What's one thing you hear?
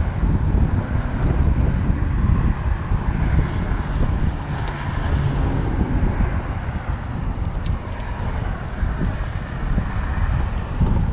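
Wind rushes loudly past a moving bicycle outdoors.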